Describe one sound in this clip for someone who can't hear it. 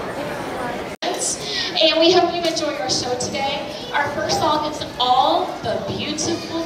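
A children's choir sings together.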